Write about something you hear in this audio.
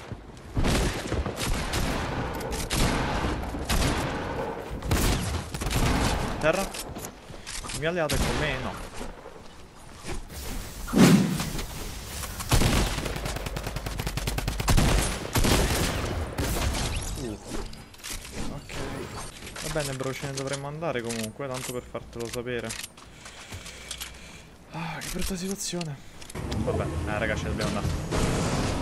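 Gunshots crack rapidly in a video game.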